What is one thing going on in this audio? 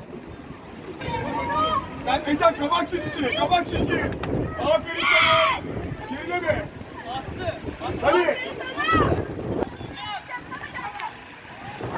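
Players shout to each other outdoors.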